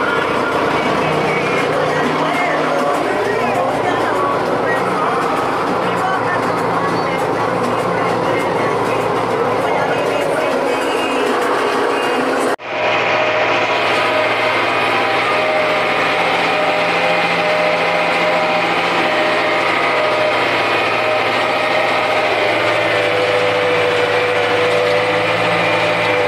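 A diesel tractor engine runs under load, heard from inside the cab.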